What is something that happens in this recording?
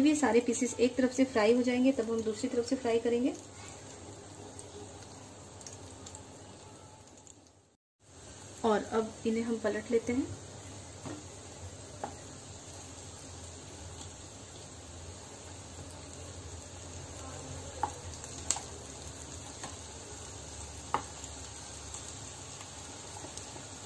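Food sizzles gently in oil in a frying pan.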